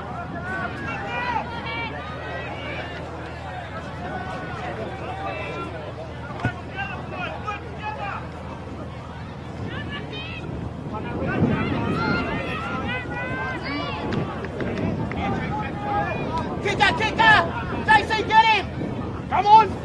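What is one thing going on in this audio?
A crowd chatters and murmurs in the distance.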